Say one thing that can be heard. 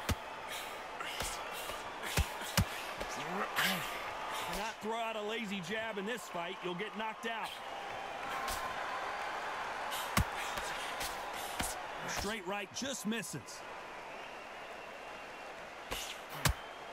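Gloved punches land with sharp thuds.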